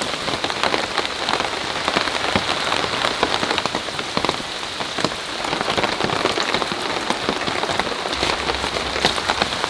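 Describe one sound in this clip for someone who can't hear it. Water drips and splashes off the edge of a tarp.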